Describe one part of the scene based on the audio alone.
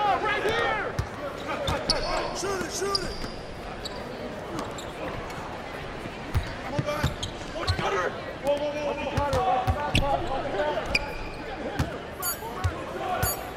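A basketball bounces on a hardwood court.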